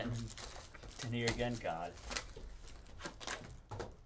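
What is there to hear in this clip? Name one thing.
Plastic wrapping crinkles as it is torn off a box.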